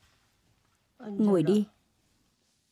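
An elderly woman answers calmly.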